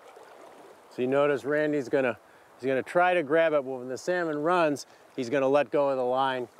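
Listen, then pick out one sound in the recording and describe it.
An older man speaks calmly close by.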